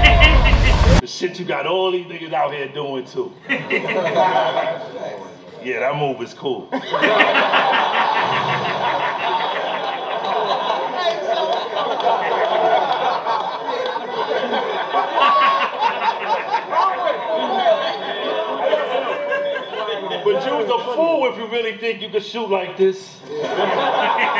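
A man raps with animation through a microphone.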